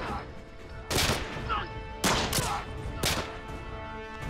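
Rifle shots ring out loudly.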